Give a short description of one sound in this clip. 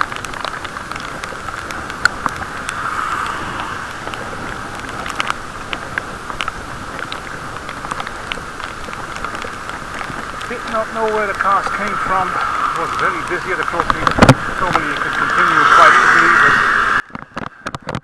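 Bicycle tyres hiss on a wet path.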